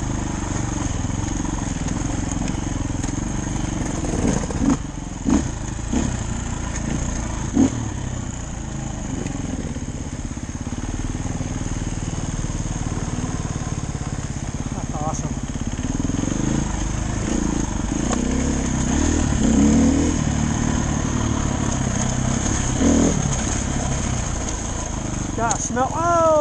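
A dirt bike engine revs and hums steadily close by.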